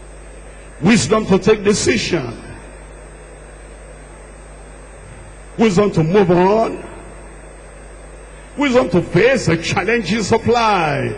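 A man prays loudly and fervently through a loudspeaker in a large echoing hall.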